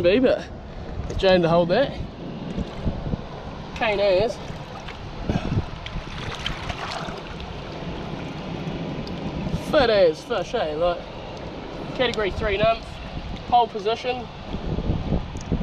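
Water laps gently against rocks.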